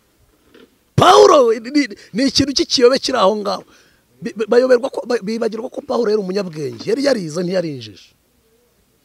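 A man speaks with animation into a microphone close by.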